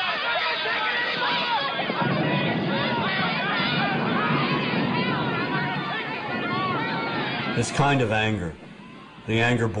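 Many men and women shout out from all around, their voices echoing between buildings.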